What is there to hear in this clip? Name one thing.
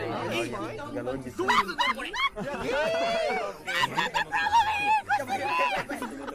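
A young woman laughs over a microphone.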